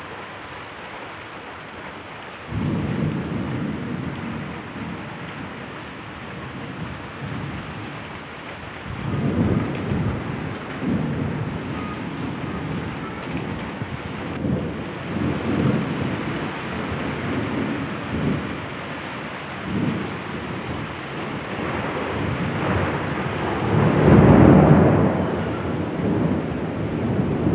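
Heavy rain falls steadily.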